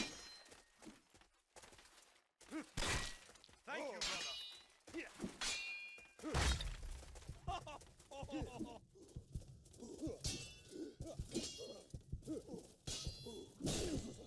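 Steel swords clash with sharp metallic clangs.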